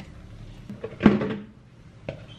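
Dough thumps down onto a countertop.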